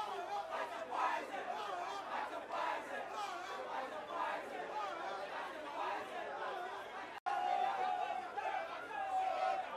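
A large crowd sings along loudly outdoors.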